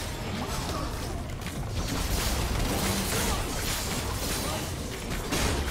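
Magic spells whoosh and burst in a fast battle.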